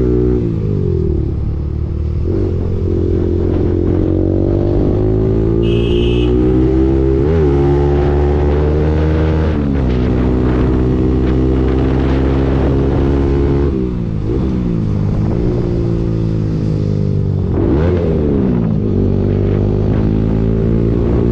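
A motorcycle engine hums steadily and its pitch rises and falls with gear changes.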